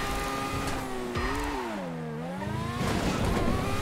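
An open-wheel racing car's engine drops revs into a corner and climbs again.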